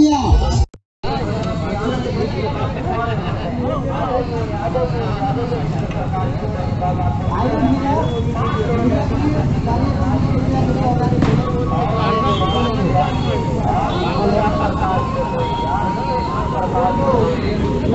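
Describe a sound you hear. Several people talk in a murmur.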